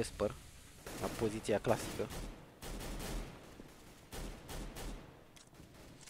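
Rifle gunfire rattles in short bursts.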